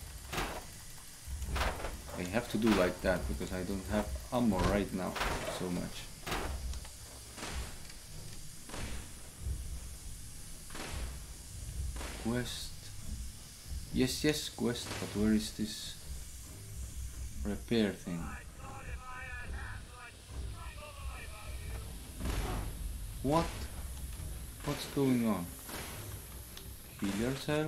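A young man talks animatedly and close into a microphone.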